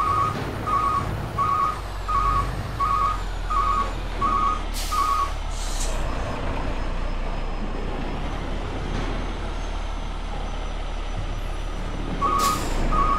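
A truck's reversing alarm beeps in a steady, even rhythm.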